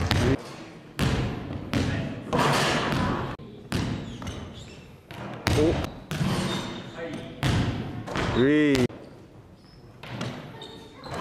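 A basketball bounces on a wooden floor, echoing through a large hall.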